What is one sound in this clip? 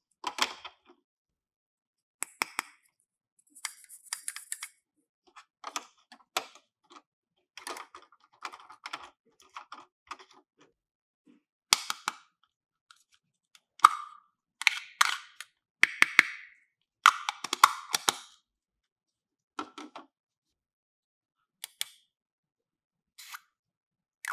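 Plastic toy parts click and clatter as hands handle them.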